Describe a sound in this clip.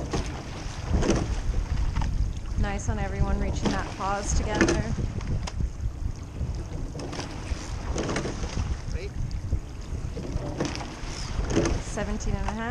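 Oars thump and clunk in their locks with each stroke.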